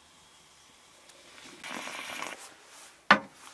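Coffee gurgles and bubbles up in a pot.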